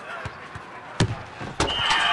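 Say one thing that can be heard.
A ball is struck hard with a thud.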